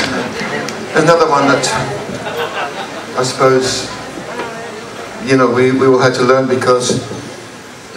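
A man sings into a microphone through loudspeakers in a large hall.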